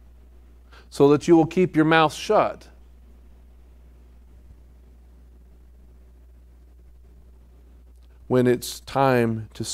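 A middle-aged man speaks calmly through a microphone, with long pauses.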